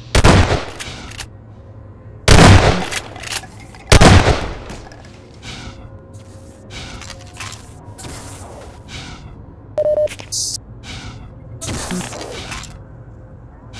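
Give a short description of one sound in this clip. Loud gunshots ring out a few times, echoing briefly.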